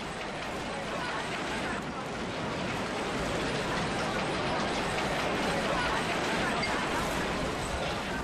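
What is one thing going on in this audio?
A large crowd cheers and chatters loudly in a big echoing hall.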